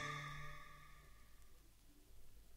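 Music plays from a record and fades out.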